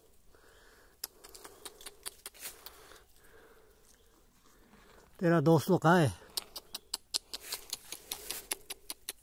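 A wild ox licks and chews noisily right beside the listener.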